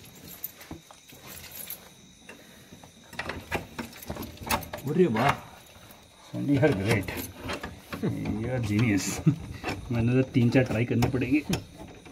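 A metal padlock and latch clink and rattle as hands handle them.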